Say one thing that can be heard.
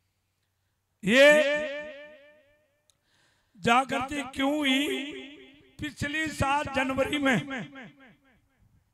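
An elderly man speaks with animation into a microphone, amplified over loudspeakers.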